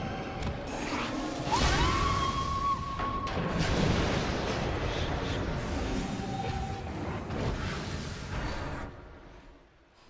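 Magic spells crackle and burst in a noisy battle.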